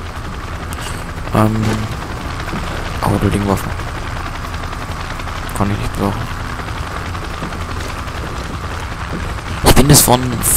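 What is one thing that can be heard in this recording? A helicopter engine roars with a steady low drone.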